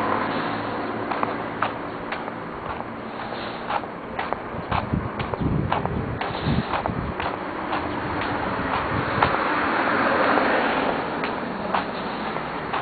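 Traffic hums steadily along a nearby street outdoors.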